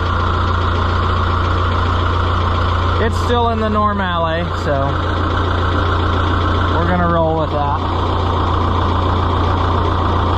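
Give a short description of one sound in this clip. A tractor engine idles with a steady, loud rumble.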